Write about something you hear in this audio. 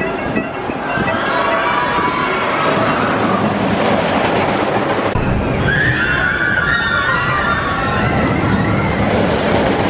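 Riders scream as a roller coaster drops.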